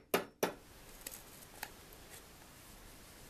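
A chisel scrapes softly against wood.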